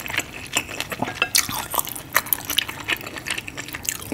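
Wooden chopsticks click and scrape against a bowl.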